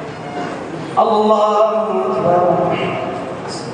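A man chants loudly into a microphone, echoing in a large hall.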